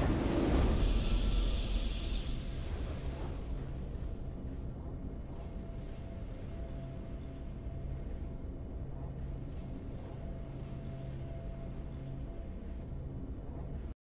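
A triumphant victory fanfare plays.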